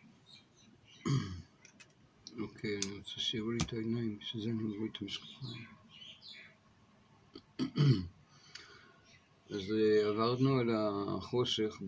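An elderly man speaks close to the microphone, calmly and with pauses.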